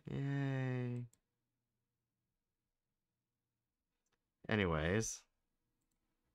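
A young woman makes drawn-out, playful vocal sounds close to a microphone.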